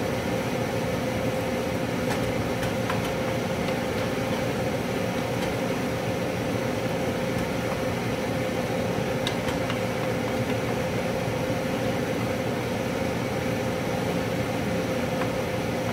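A wooden spoon stirs and scrapes against a pot.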